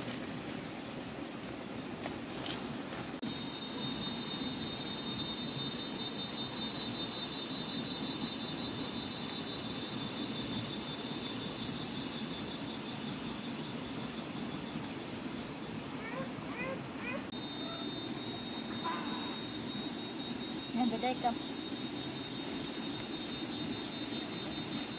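Leaves rustle and snap as they are picked by hand.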